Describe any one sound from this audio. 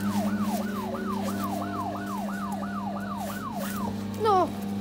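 A toy car ride plays a rapidly repeating electronic siren wail.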